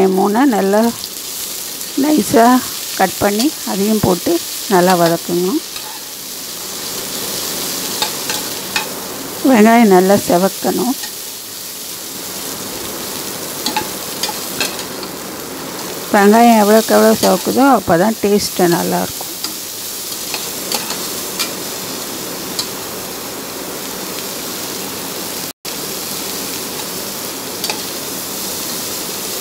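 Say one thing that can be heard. A metal ladle scrapes and clinks against a pot.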